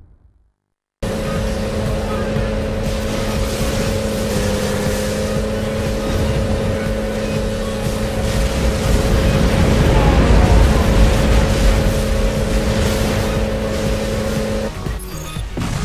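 A motorbike engine hums steadily at speed.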